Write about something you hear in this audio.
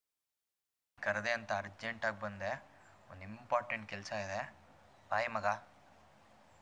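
A young man speaks earnestly, close by.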